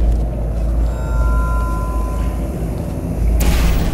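Sparks crackle where a laser beam hits a wall.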